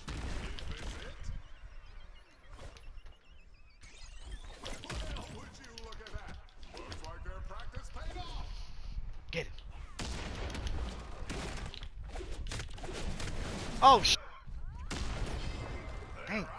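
Punches and impacts thud in a video game brawl.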